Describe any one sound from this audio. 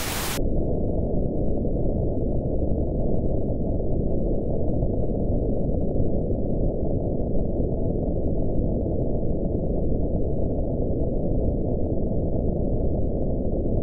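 A steady, deep rushing noise plays through a loudspeaker.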